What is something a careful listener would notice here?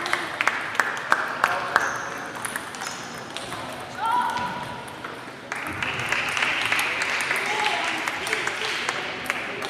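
Table tennis balls click sharply on tables and paddles in a large echoing hall.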